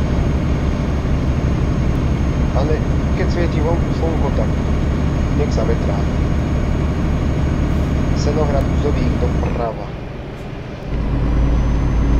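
A truck engine drones steadily, dropping briefly before surging back.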